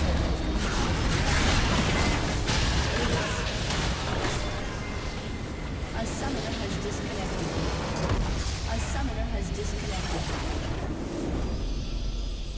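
Spell blasts and explosions crash in a game battle.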